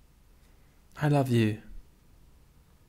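A man says a few words briefly, close to a microphone.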